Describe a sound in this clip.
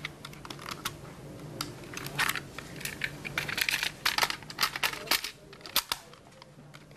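Plastic clicks and rattles as a small cassette player is handled close by.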